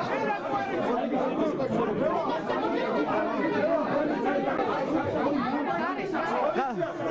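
A crowd of men talk over one another close by.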